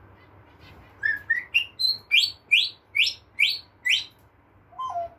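A parrot makes a rapid series of high squeaks.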